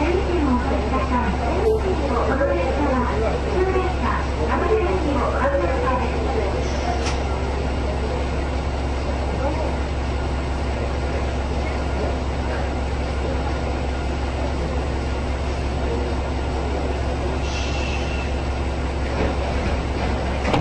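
A train engine idles with a steady low hum.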